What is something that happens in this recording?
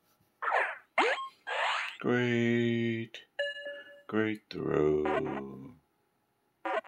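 Cartoonish game sound effects whoosh, wobble and chime.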